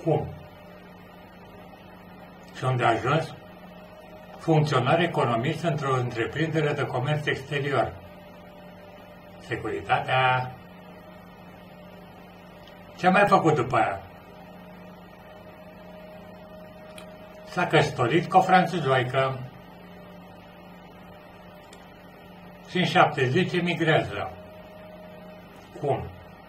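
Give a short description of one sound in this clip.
An elderly man speaks calmly and close, in short bursts with pauses.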